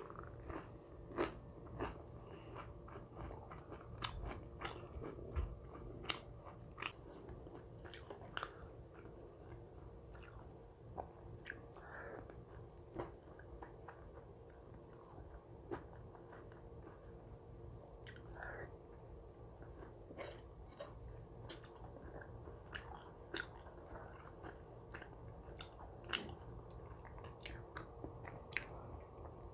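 A woman chews and slurps food close to a microphone.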